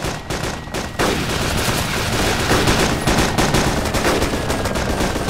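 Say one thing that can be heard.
A helicopter's rotor thuds loudly overhead.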